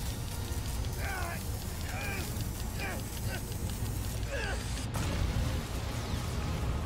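Electricity crackles and sizzles.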